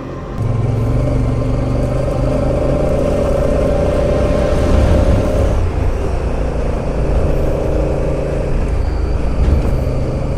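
A motorcycle engine hums steadily, shifting pitch as it rides.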